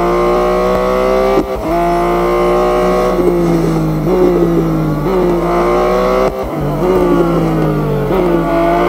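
A racing car engine roars at high revs, dropping in pitch with each gear change.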